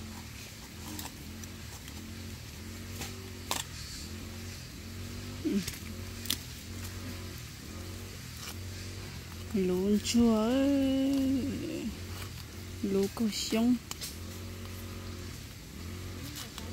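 A knife chops into soil and roots.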